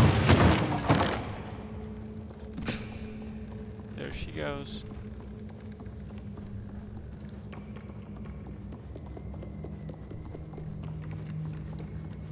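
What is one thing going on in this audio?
Soft footsteps patter on a wooden floor.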